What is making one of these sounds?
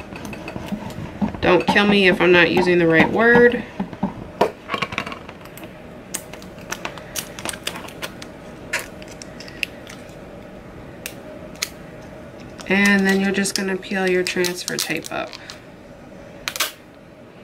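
Plastic pieces tap and click softly.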